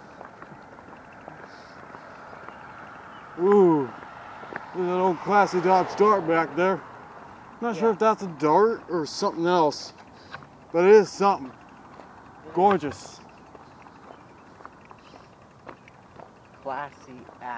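Bicycle tyres roll steadily over asphalt.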